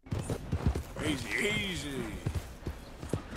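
A man talks calmly into a microphone close by.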